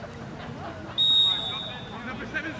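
A referee's whistle blows once, short and shrill.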